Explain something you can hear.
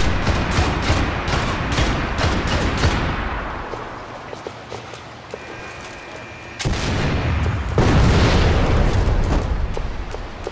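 Gunshots crack rapidly and echo between buildings.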